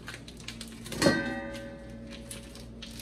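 A metal bowl clanks and rings.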